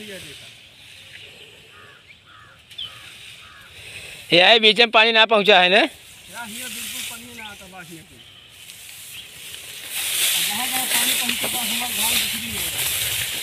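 Wind rustles through tall grass outdoors.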